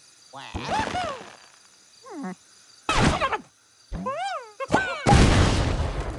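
A cartoon bird squawks as it is launched from a slingshot.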